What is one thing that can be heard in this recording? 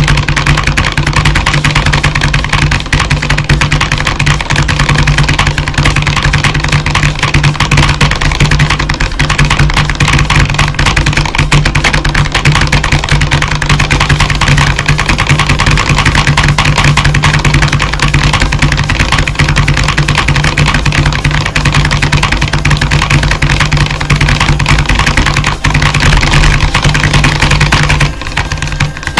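Keyboard keys clatter in fast, rapid taps.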